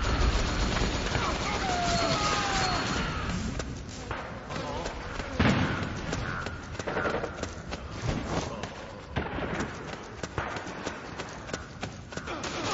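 Footsteps patter quickly as a game character runs.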